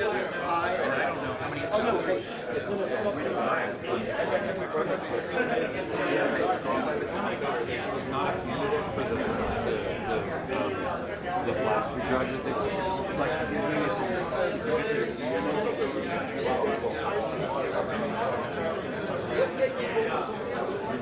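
A crowd of adult men chatters all around in a busy indoor hall.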